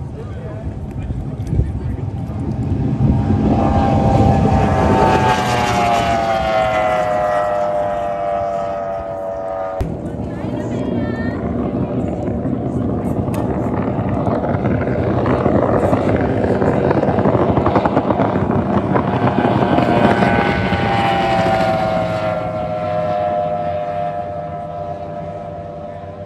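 A speedboat engine roars loudly as the boat races past, its pitch falling as it goes by.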